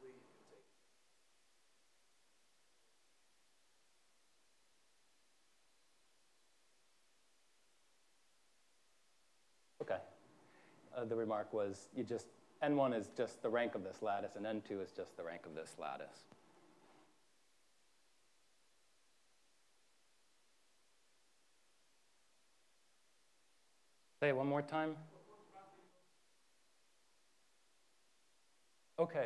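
A man speaks calmly through a clip-on microphone, with long pauses.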